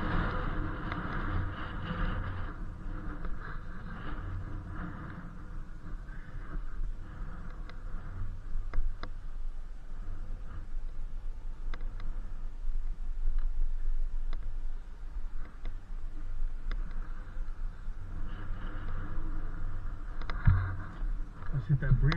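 Wind rumbles across a microphone.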